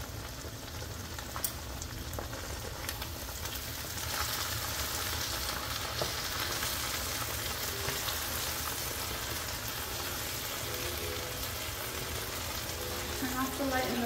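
Meat sizzles and crackles steadily in a hot pan.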